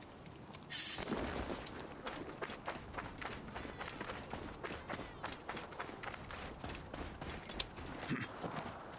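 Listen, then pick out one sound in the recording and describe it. Quick footsteps run across dry dirt.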